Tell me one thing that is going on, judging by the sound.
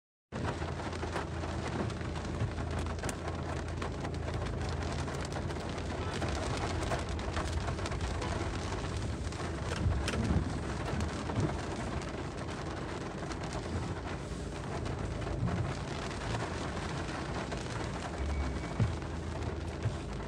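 Heavy rain patters steadily on a car windscreen.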